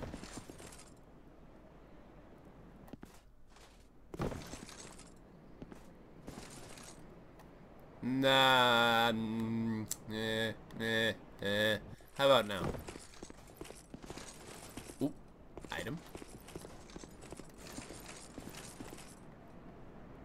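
Armoured footsteps clank on stone and roof tiles.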